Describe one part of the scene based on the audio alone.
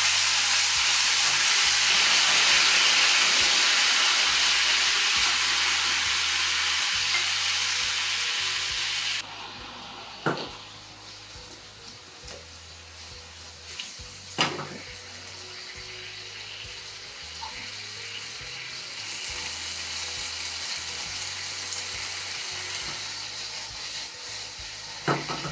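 Eggplant sizzles loudly in hot oil in a pan.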